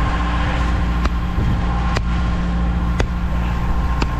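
A sledgehammer knocks against a pipe a few times.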